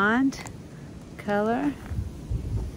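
A woman calls out briefly close by.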